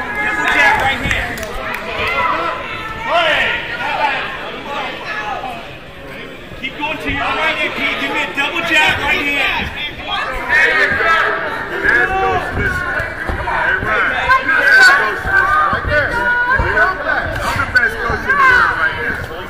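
A crowd shouts and cheers loudly in a large hall.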